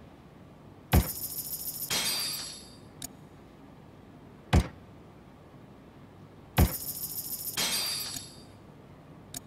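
A bright chiming cash-register jingle rings out.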